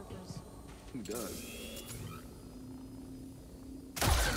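A blaster fires a bolt.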